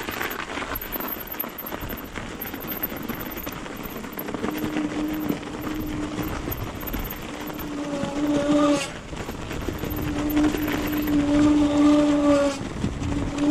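Bicycle tyres crunch and rumble over packed snow.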